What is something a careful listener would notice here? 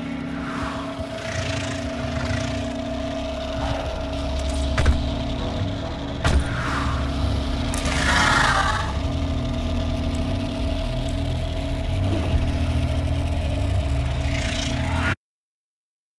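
A low, eerie hum drones steadily, then cuts off suddenly.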